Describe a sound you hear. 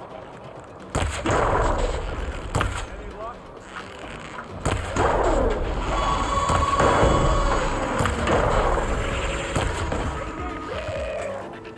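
Electric energy crackles and zaps in bursts.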